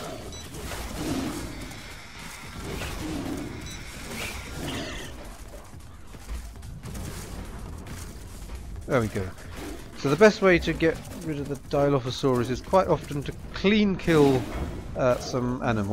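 A large cat growls and snarls.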